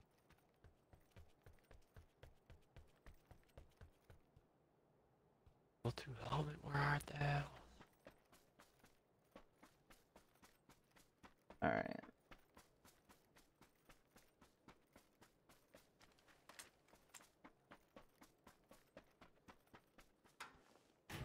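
Footsteps tap steadily on hard ground.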